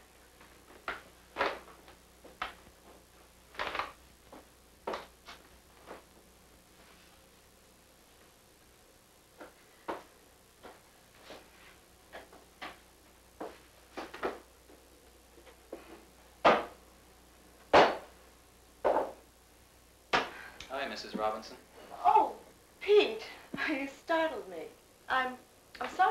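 A woman talks to herself in short, agitated bursts.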